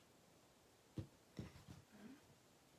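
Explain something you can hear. A small cardboard box is set down on a table with a soft knock.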